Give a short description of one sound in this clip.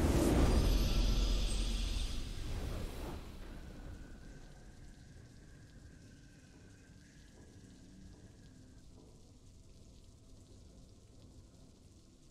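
A triumphant game tune plays softly.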